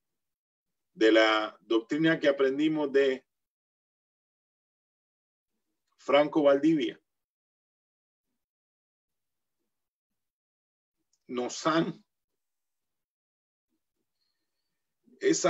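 A middle-aged man speaks calmly in short bursts, heard through an online call.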